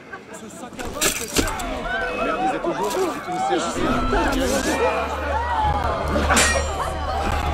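Men shout loudly in a scuffle.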